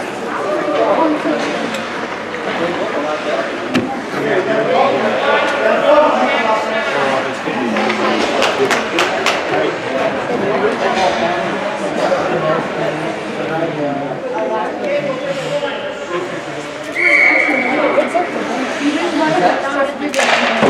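Spectators chatter nearby in a large echoing rink.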